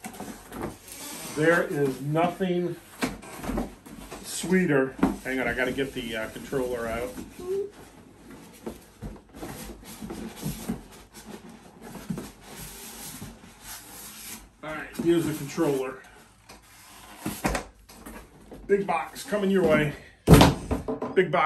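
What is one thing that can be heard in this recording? Cardboard rustles and scrapes as a box is slid off.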